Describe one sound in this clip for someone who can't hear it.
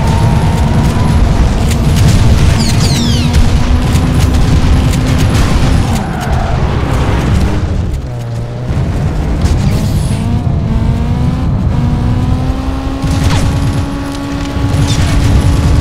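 A car engine roars at high revs, dropping as the car slows and rising again as it speeds up.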